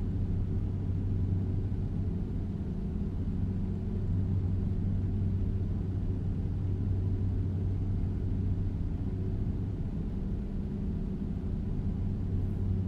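A truck engine drones low and steady as it cruises along a highway.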